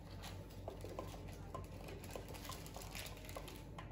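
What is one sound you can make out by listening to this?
A plastic scraper scrapes softly across frosting.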